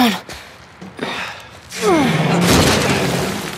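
A teenage girl speaks quickly nearby.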